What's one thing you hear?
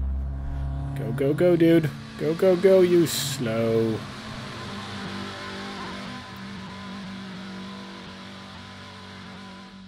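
Race car engines roar past on a track.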